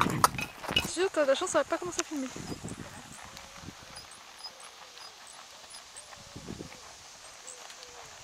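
A horse's hooves thud softly on sand as it trots.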